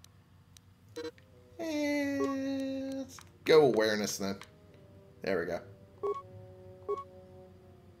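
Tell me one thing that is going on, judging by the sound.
Short electronic menu tones chime as selections change.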